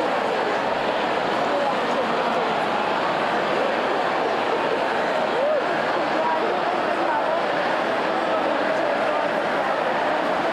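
A large crowd murmurs and chatters loudly all around.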